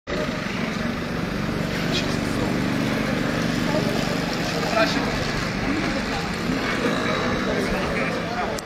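Several adult men and women talk nearby outdoors.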